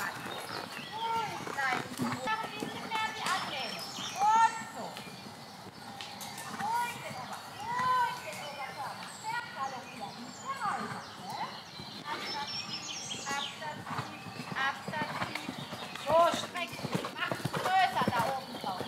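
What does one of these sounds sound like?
A horse's hooves thud softly on sand at a walk.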